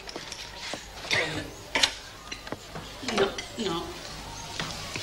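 A woman speaks with emotion nearby.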